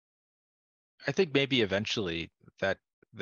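A second man speaks calmly over an online call.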